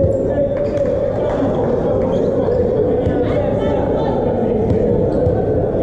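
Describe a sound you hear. A volleyball is struck with the hands during a rally.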